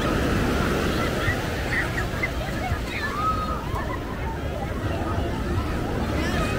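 Small waves wash onto the sand.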